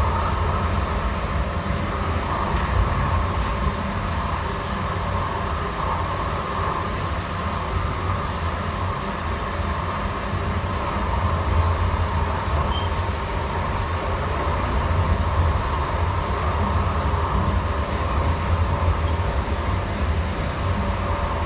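A train car rumbles and rattles steadily along the track.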